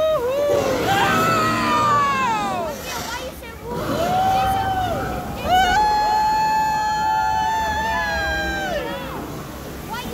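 Riders on a moving ride whoop and scream loudly.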